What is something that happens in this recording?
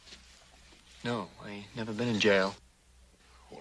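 A younger man speaks calmly in reply.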